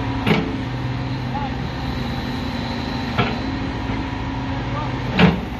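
A backhoe bucket knocks against rock and soil in a trench.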